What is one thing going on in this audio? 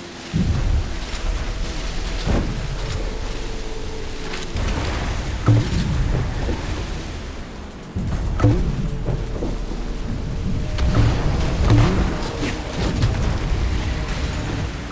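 Water splashes and sprays behind a speedboat.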